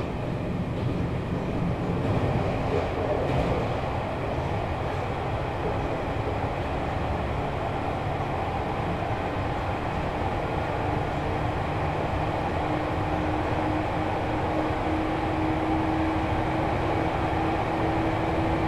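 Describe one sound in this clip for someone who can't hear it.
A train rumbles and hums steadily while it runs.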